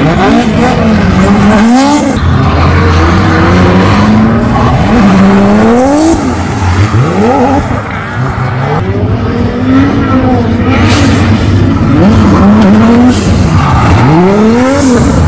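Tyres squeal on wet tarmac.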